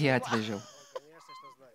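A middle-aged woman laughs loudly close to a microphone.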